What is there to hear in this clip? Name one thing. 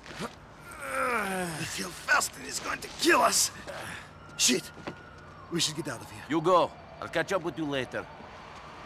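A man speaks urgently and anxiously.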